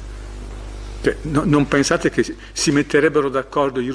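An elderly man speaks with animation into a microphone.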